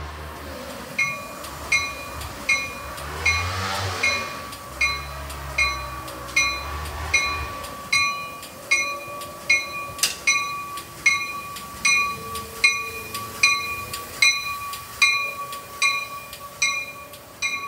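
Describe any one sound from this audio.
A train's bell rings steadily and repeatedly.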